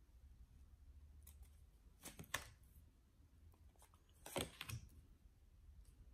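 Cards are laid down softly on a table.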